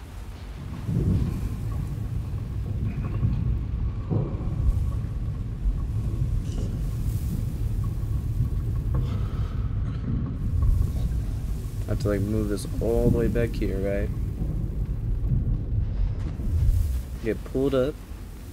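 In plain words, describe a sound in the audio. A heavy cart rumbles and creaks as it is pushed along.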